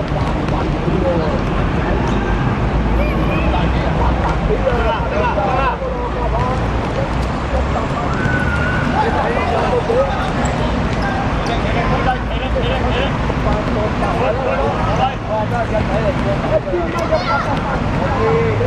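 Shoes squeak on a hard court.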